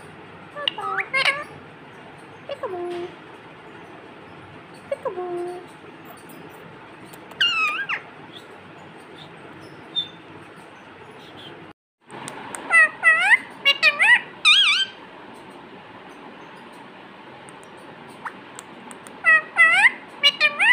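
A parrot squawks and chirps loudly close by.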